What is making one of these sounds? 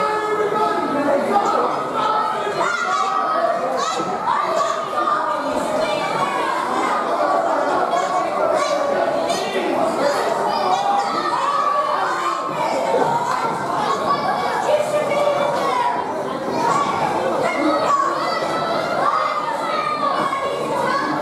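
A crowd chatters and calls out loudly in a large echoing hall.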